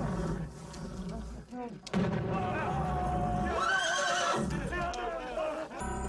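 Fire roars and crackles.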